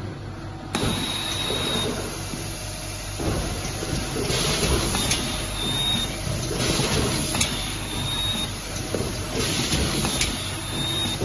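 A machine clicks and clacks in a repeating rhythm.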